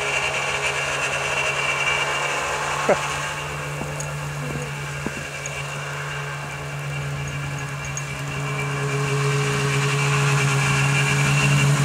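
A snowmobile engine hums steadily, fading as it moves away and growing louder as it comes back close.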